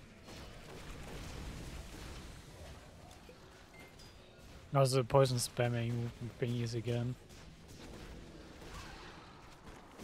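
Magic spells crackle and whoosh in a fast fight.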